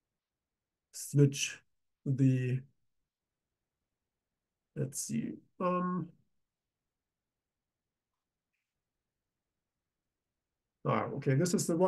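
A man speaks calmly in short phrases through a microphone, with pauses between them.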